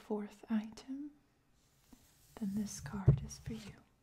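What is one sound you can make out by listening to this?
A playing card slides softly across a wooden table.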